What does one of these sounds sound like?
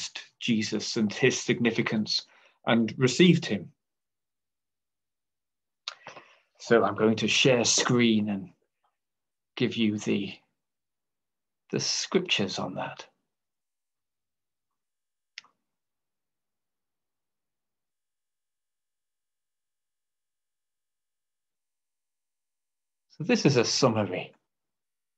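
An older man speaks calmly over an online call, in short bursts with pauses.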